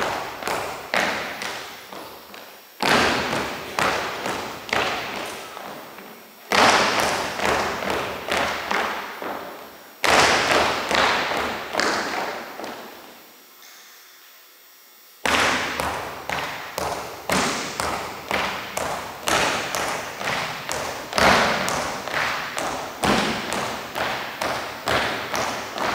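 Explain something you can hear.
Dancers' hard shoes tap out a quick rhythm on a wooden floor in a large echoing hall.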